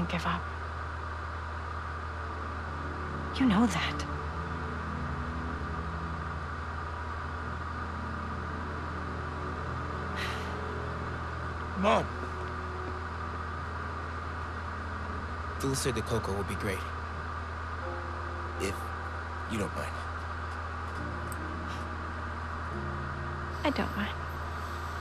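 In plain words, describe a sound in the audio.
A woman speaks softly and calmly, close by.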